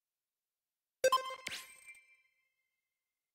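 A game menu chimes as a selection is confirmed.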